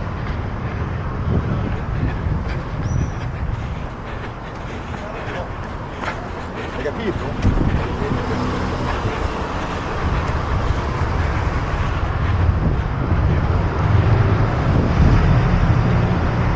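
Traffic hums steadily along a busy road nearby.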